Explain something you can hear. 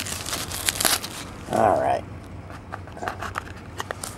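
A cardboard box scrapes and taps as hands open it.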